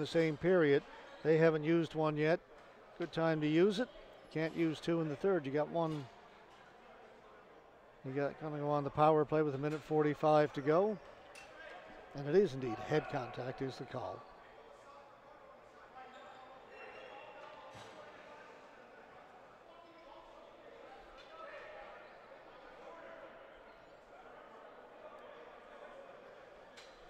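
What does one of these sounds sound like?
Players call out and chatter in a large echoing arena.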